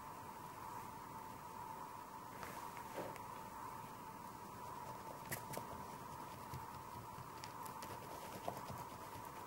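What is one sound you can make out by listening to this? A pastel stick scrapes and rubs across paper.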